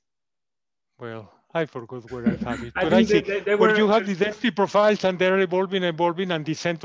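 A man lectures calmly, heard through an online call.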